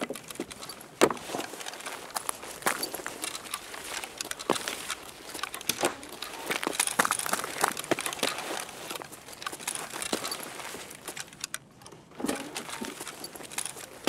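Footsteps tread steadily over a hard floor.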